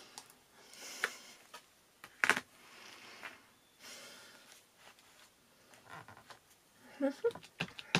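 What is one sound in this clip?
A plastic ink pad case clicks open and shut.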